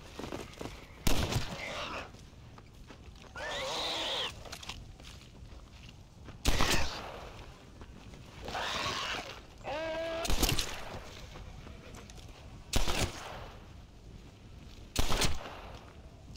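Loud gunshots ring out one at a time.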